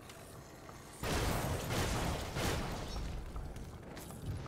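A magical blast roars and hisses loudly.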